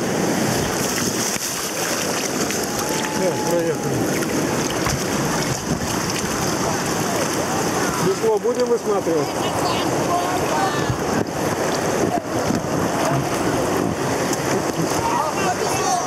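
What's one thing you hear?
Men shout over the water.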